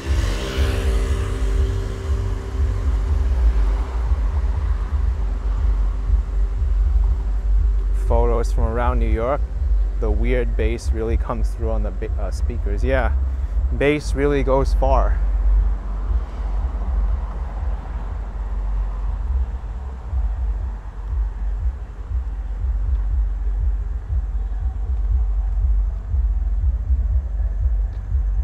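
Wind buffets and rumbles steadily outdoors.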